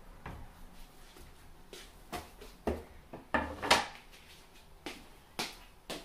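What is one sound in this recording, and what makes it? A wooden board knocks onto a table.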